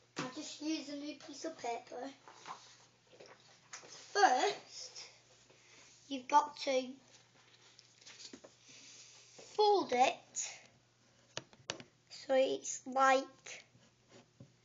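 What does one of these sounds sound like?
A young child talks close by in short bursts.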